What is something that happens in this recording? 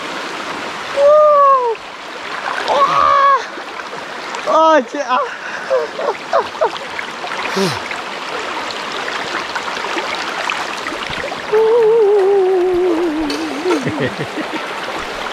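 A young man talks and exclaims close by, outdoors.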